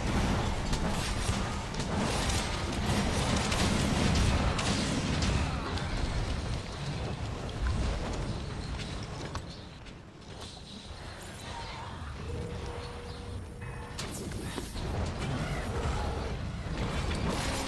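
A sword clashes against a monster's scales with sharp metallic hits.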